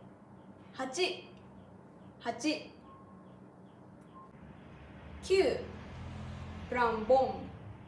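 A young woman speaks close to the microphone, clearly and with animation, as if teaching.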